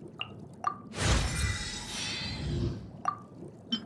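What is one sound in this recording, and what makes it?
A bright shimmering chime swells and fades.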